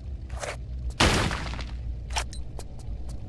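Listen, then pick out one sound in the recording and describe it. A burst of gunfire rings out.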